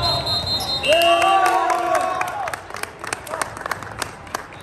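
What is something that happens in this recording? A young man claps his hands.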